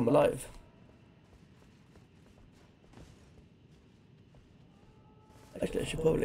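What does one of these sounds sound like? Footsteps tread on rocky ground.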